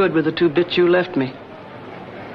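A middle-aged woman speaks clearly up close.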